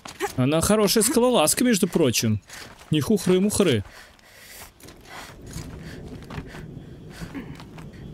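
A climber's hands and feet scrape and knock on rock.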